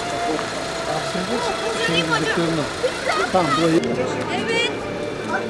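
Young children talk and call out loudly nearby.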